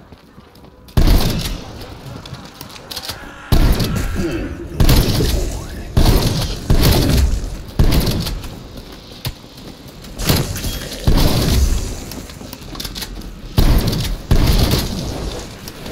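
A gun fires in loud, rapid bursts.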